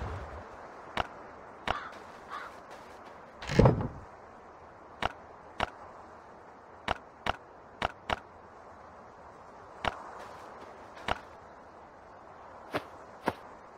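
Short, soft clicks from a game menu sound now and then.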